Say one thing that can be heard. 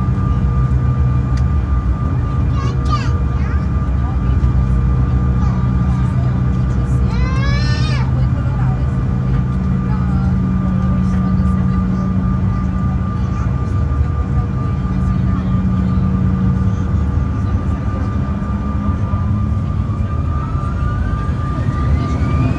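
Tyres rumble over a runway's joints.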